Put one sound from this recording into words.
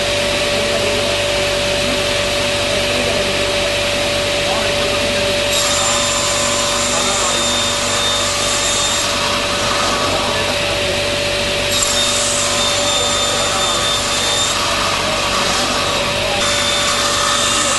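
A saw blade cuts through a wooden board with a rasping hiss.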